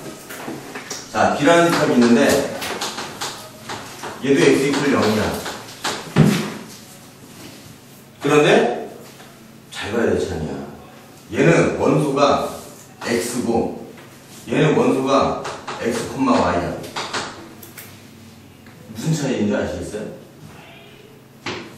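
A man lectures with animation, close by.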